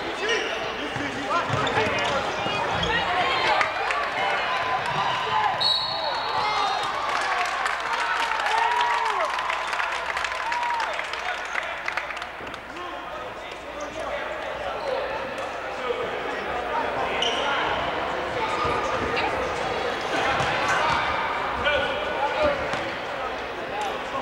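A crowd chatters and cheers throughout in an echoing hall.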